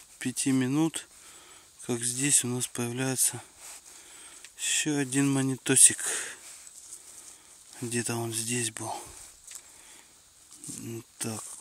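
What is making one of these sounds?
A stick scrapes and pokes into soft soil.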